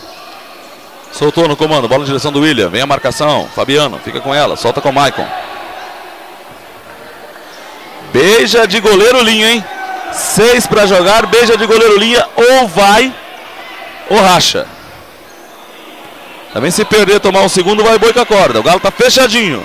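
A ball thuds as players kick it around a hard court.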